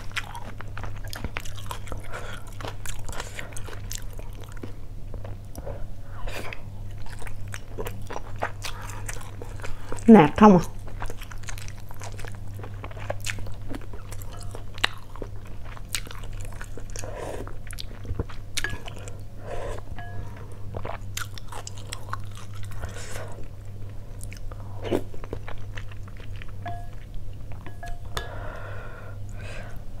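Chopsticks click against a plate and bowl.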